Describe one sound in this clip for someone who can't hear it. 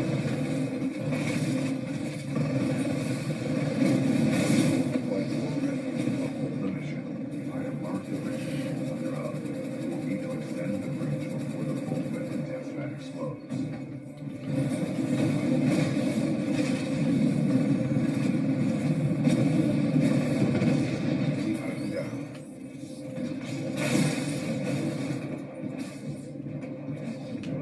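Gunfire and explosions from a video game play through a television's speakers.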